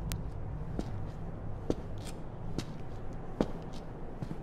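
Footsteps tap slowly on wet pavement.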